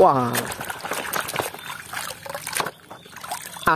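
Water drips and trickles back into a tub.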